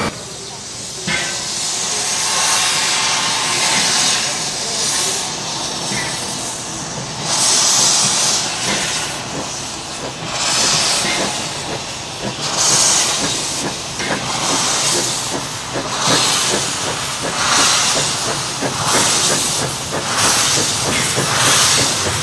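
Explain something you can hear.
A steam locomotive chuffs rhythmically as it approaches.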